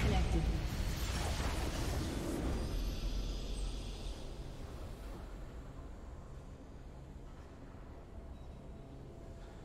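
A triumphant fanfare plays and slowly fades.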